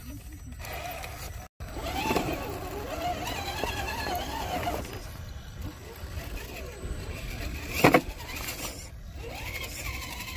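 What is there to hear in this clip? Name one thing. A small electric motor whines as a toy truck crawls over rock.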